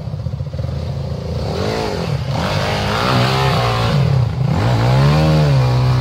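Dirt bike engines rev and sputter up close.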